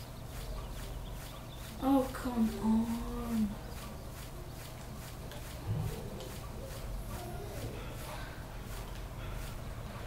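Footsteps tread on a dirt path at a walking pace.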